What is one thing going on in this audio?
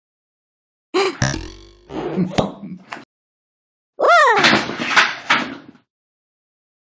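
A cartoon cat speaks in short, squeaky bursts.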